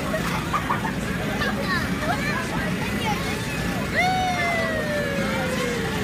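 A young child squeals with excitement close by.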